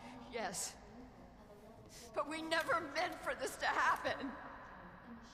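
A woman speaks in a shaky, upset voice.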